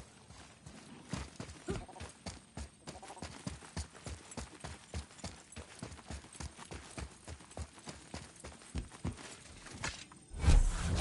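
Heavy footsteps thud quickly on stone.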